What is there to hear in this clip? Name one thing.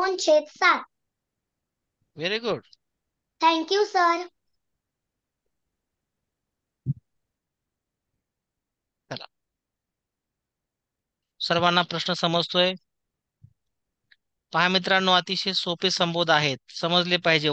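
A woman speaks calmly over an online call, in short bursts.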